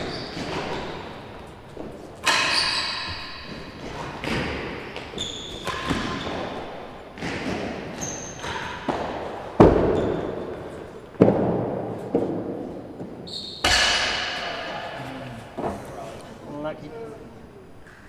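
A ball thuds sharply off walls and racquets, echoing loudly around a large hall.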